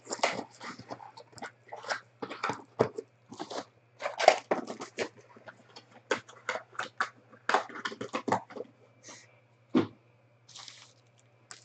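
Cardboard packs rustle and scrape as they are handled.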